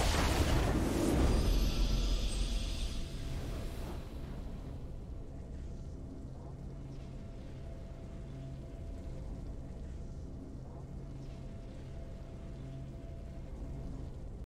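A triumphant game fanfare swells and then fades.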